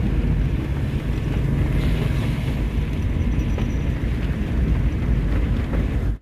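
Rain patters on a car's windshield.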